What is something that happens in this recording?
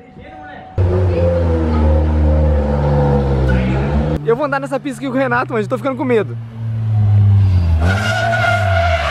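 A car engine roars and revs loudly nearby.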